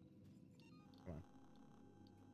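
A game menu opens with a short whooshing sound.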